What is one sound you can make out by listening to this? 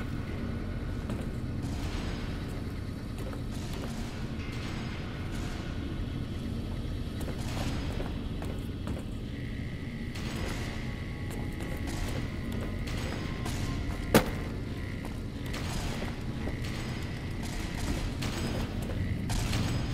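Footsteps clang on a metal grated floor.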